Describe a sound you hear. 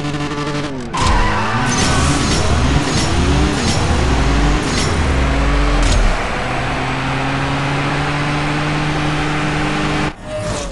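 A sports car engine roars as the car accelerates hard, climbing through gear shifts.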